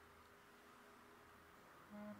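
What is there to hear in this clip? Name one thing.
A knob on an amplifier turns with a soft scrape.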